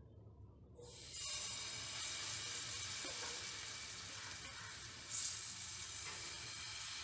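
Batter sizzles on a hot pan.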